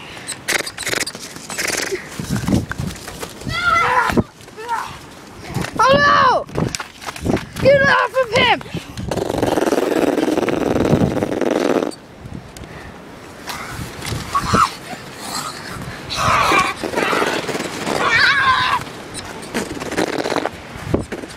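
Young boys shout excitedly.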